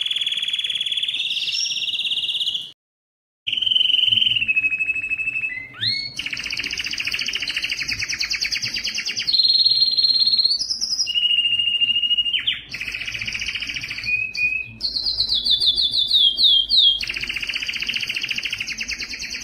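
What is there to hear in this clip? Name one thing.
A canary sings loudly and close by with fast trills and chirps.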